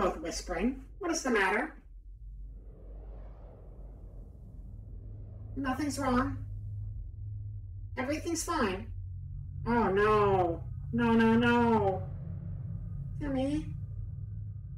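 A young woman speaks with animation through a microphone, in bursts with pauses.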